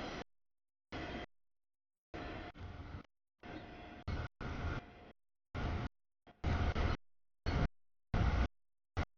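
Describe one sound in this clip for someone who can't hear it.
A freight train rumbles past.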